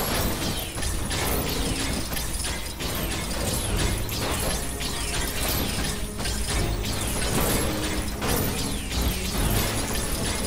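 Toy bricks burst apart and clatter.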